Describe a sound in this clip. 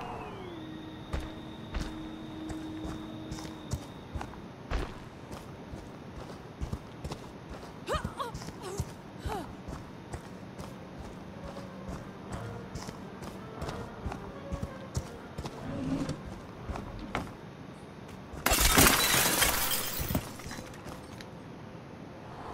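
Heavy footsteps crunch over grass and gravel.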